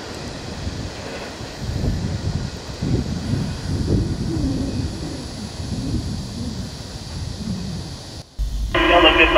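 A distant locomotive engine rumbles as it approaches.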